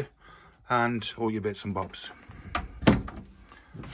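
A wooden cabinet door clicks shut.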